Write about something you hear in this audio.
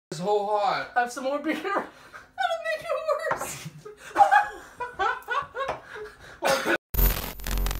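A young woman laughs heartily close by.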